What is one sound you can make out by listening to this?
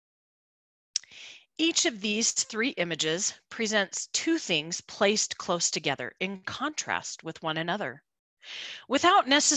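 A woman speaks calmly through an online call microphone.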